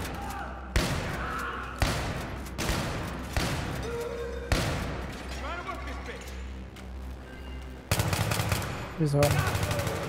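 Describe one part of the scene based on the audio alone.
Gunshots bang in an echoing underground space.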